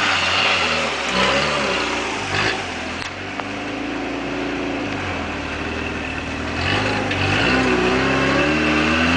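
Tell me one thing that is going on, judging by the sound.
An off-road buggy's engine revs hard, rising and falling in pitch.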